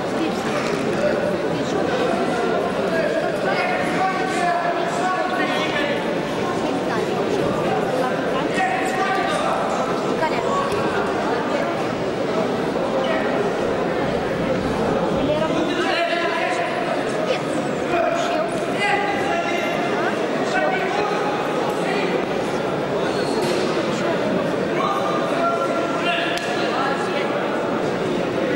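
Voices of many people shout out across the hall.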